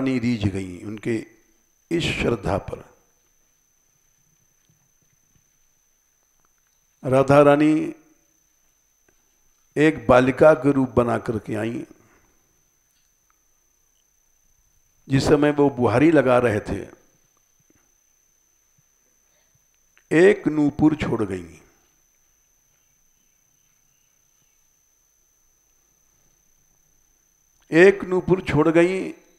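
An elderly man speaks calmly into a close headset microphone, in short phrases with long pauses.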